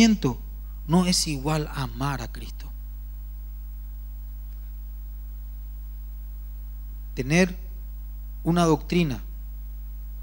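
A man speaks with emphasis into a microphone, heard through loudspeakers in a large hall, with long pauses.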